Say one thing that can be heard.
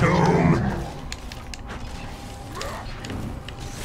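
Objects smash and crumble.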